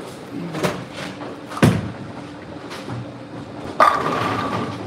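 A bowling ball rumbles down a lane.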